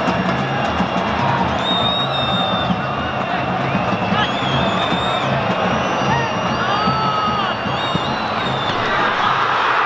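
A large stadium crowd chants and whistles.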